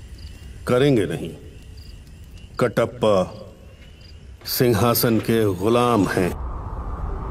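A man speaks in a low, intense voice, close by.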